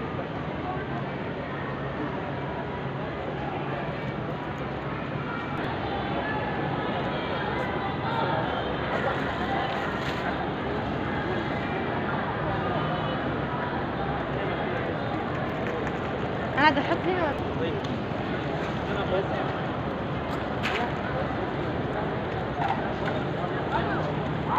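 Many men murmur and talk in a large echoing hall.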